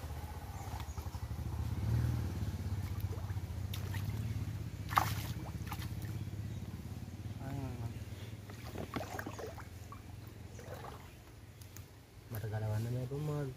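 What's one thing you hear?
Water splashes and trickles around a man's hands in shallow water.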